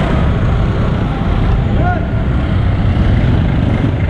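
A motorcycle engine passes close by.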